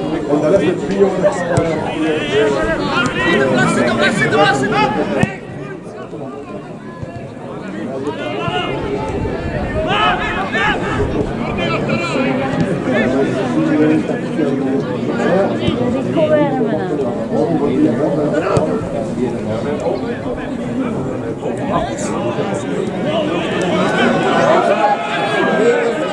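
Men shout and call to each other outdoors across an open field.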